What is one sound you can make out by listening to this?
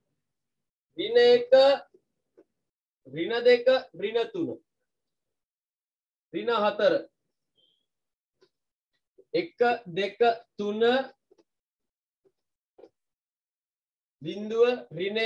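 A young man speaks calmly in short phrases, close by.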